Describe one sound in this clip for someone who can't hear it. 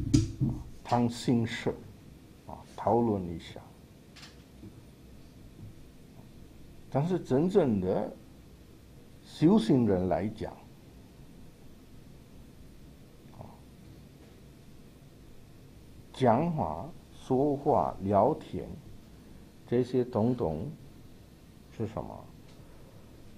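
A man speaks slowly and calmly into a microphone, in short phrases with pauses.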